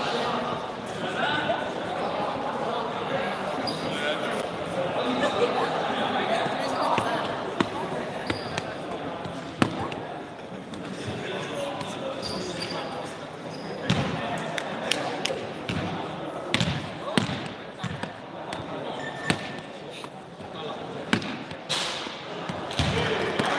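A crowd of young people talks and calls out.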